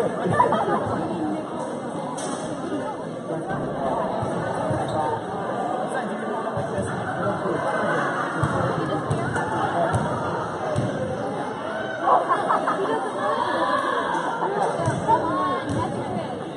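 Children's shoes squeak and patter on a hard court.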